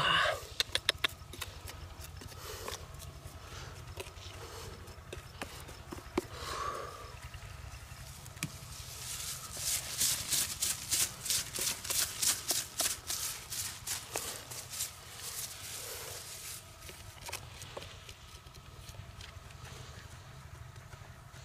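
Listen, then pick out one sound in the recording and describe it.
Hands brush and scrape loose soil.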